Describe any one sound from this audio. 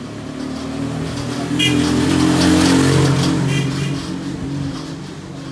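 A motor tricycle engine hums nearby.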